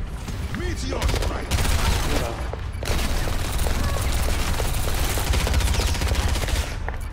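An energy gun fires rapid bursts of shots.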